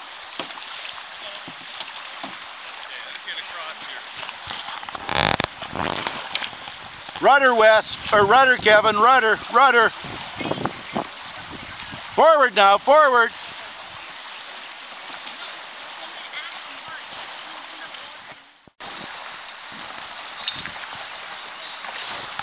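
River water rushes steadily outdoors.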